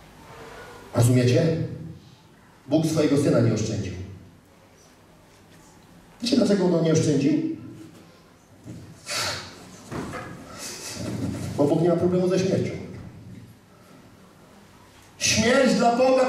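A man speaks with animation through a microphone, his voice echoing in a large room.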